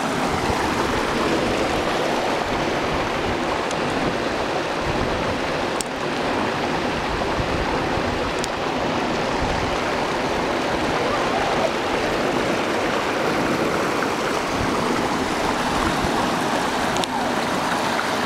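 Water flows and rushes steadily over rocks.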